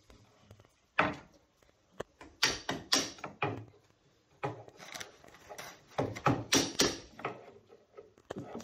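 A hand tool scrapes and taps on wood in short bursts.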